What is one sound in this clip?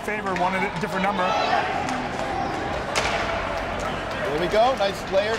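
A crowd of spectators cheers and shouts in a large echoing ice rink.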